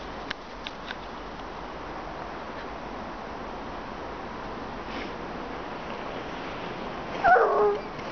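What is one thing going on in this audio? Paws crunch through snow.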